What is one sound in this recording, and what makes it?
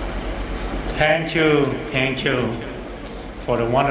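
A man speaks loudly through a microphone and loudspeakers.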